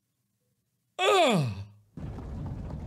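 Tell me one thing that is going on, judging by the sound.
A young man cries out in a long, wavering wail.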